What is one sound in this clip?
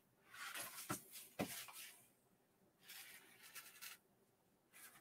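Paper rustles and crinkles as sheets are shifted.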